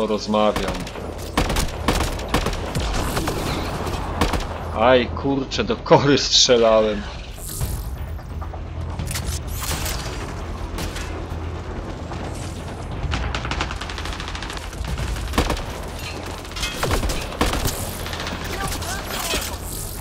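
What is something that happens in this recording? A rifle fires sharp, loud shots, one after another.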